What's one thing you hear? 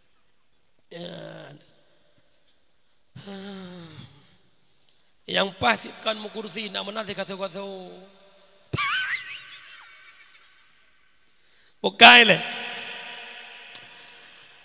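A man sings slowly and with feeling into a microphone, heard through loudspeakers in an echoing space.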